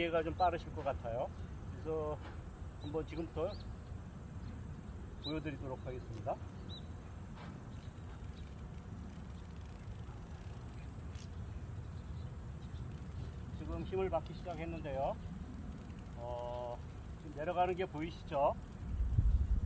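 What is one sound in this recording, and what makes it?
An elderly man talks calmly outdoors, close by.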